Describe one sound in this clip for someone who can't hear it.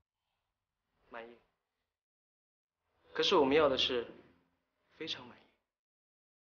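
A young man answers firmly, close by.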